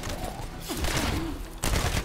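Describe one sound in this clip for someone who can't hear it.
An explosion bursts nearby.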